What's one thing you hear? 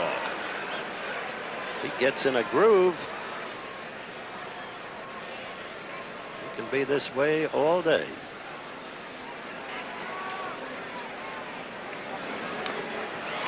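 A crowd murmurs in the stands outdoors.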